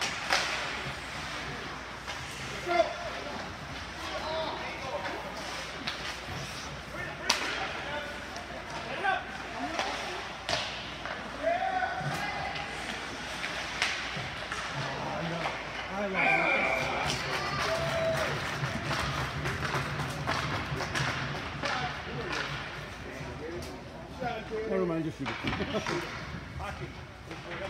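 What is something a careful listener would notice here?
Skates scrape across ice in a large echoing rink.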